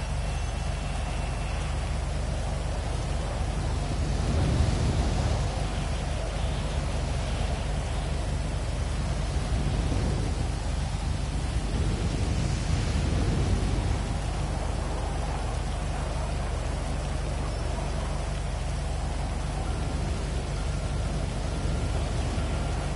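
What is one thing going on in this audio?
Rain patters steadily on the ground.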